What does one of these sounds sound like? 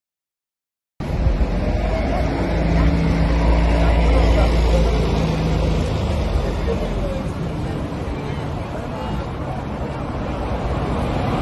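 A crowd murmurs outdoors in wind.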